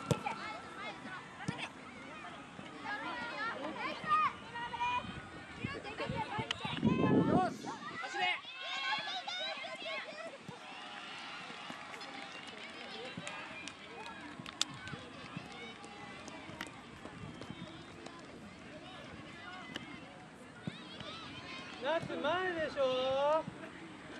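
Children shout and call out across an open playing field.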